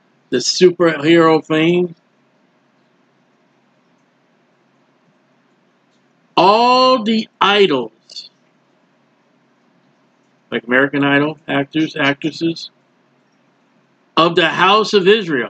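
A man speaks calmly into a close microphone, reading out with pauses.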